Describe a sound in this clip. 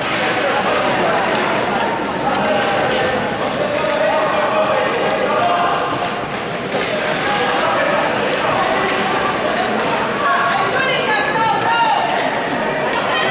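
A crowd of spectators chatters and calls out in a large echoing arena.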